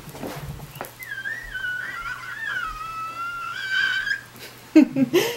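A young woman screams with excitement close by.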